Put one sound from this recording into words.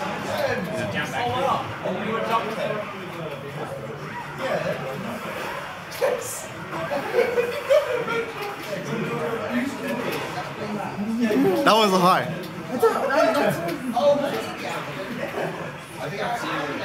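Fighting game sound effects of punches, kicks and shouts play from a loudspeaker.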